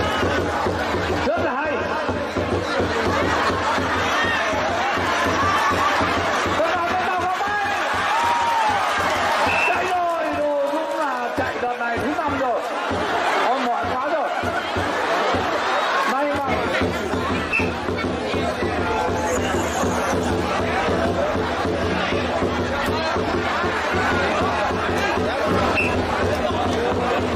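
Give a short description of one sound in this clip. A large crowd chatters and laughs loudly outdoors.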